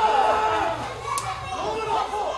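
Two men slap hands in a high five.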